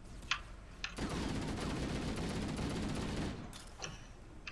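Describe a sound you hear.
An automatic rifle fires a long rapid burst.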